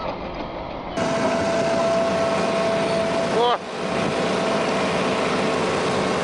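An excavator engine idles with a steady hum.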